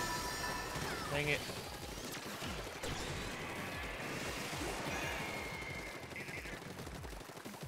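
Electronic game music plays with bright sound effects.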